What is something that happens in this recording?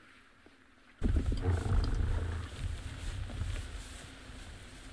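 An animal brushes and bumps against the microphone, making loud rumbling thumps close up.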